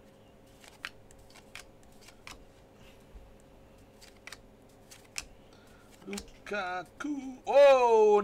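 Trading cards slide and tap against each other.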